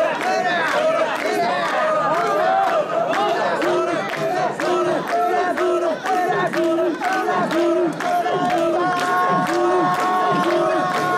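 People clap their hands.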